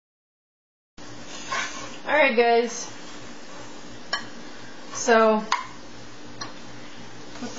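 A metal spoon scrapes and clinks against a small pot.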